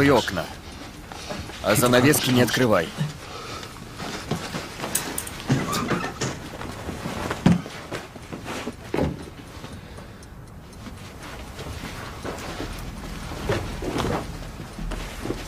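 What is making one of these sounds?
Heavy thuds and bumps sound from a scuffle.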